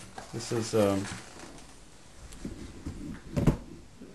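Paper rustles as a hand moves it.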